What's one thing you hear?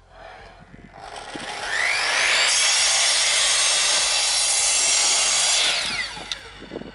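A power saw whines loudly as it cuts through wood.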